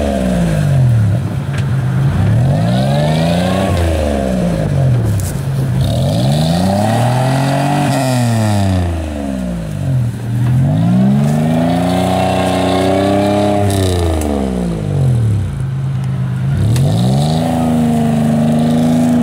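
An off-road vehicle's engine revs hard, rising and falling again and again.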